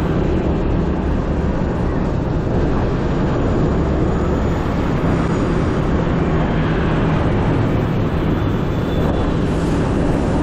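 Wind rushes past loudly while riding.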